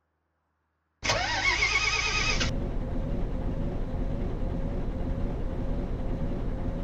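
A diesel bus engine idles.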